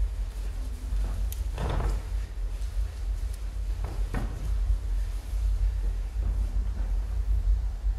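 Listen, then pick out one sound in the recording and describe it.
Bodies thump and slide on a padded floor.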